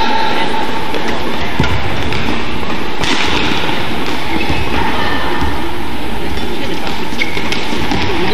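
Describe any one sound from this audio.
Badminton rackets strike a shuttlecock in a rally.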